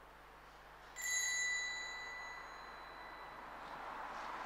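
A small bell rings once and rings out in a large echoing hall.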